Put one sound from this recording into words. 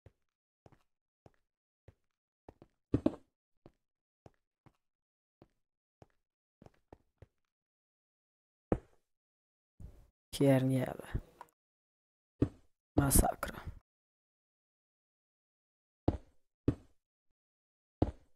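Stone blocks are placed with short, dull knocks, again and again.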